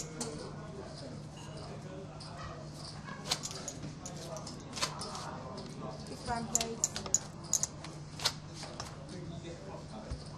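A dealer shuffles and taps a deck of playing cards.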